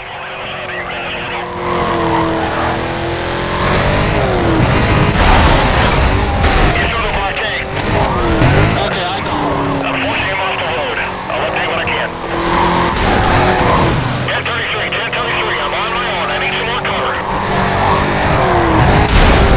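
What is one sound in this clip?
A car engine roars at high speed, revving up and down.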